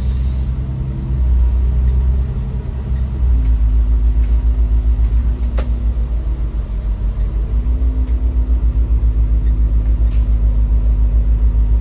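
A bus engine rumbles low and steadily while driving.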